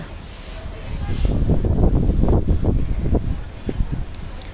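Fabric rustles as cloth is unfolded and lifted.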